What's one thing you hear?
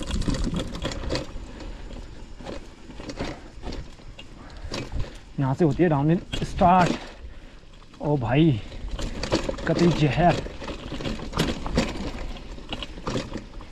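A bicycle rattles and clicks over bumps.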